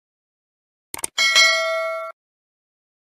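A bell chimes brightly.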